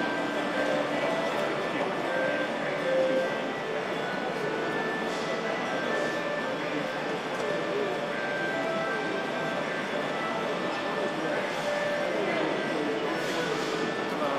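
Traditional plucked string instruments and a zither play a lively melody in a large echoing hall.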